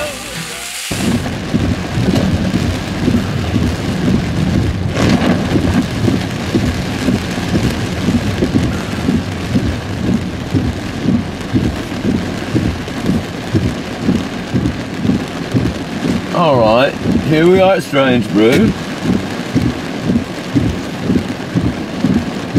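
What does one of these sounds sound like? Strong wind buffets a car in gusts.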